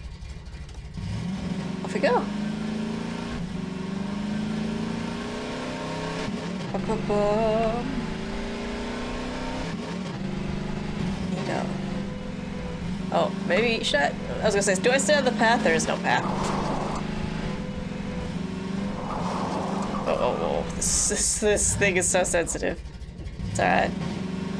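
A buggy engine hums and revs steadily.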